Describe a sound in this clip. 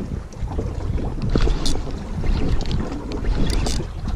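A spinning reel is wound in.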